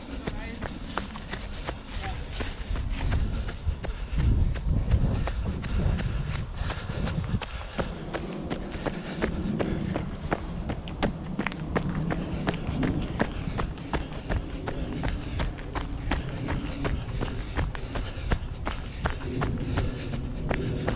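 Footsteps crunch on dry leaves and gravel at a steady walking pace.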